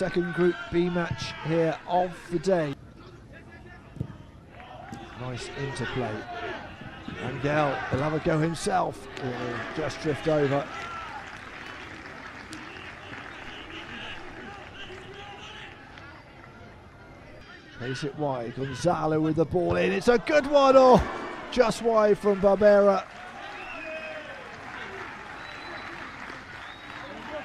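A crowd murmurs in a stadium outdoors.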